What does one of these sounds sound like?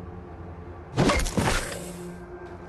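A heavy weapon strikes with a loud thud.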